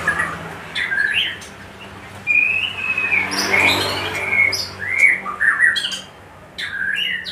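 A caged bird chirps nearby.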